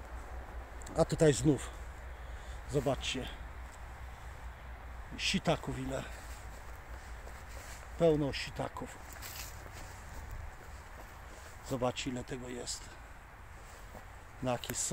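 A middle-aged man speaks calmly in short phrases, close to a microphone.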